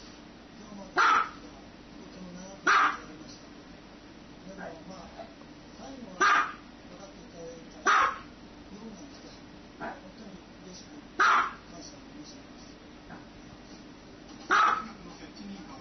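A small dog barks sharply every few seconds.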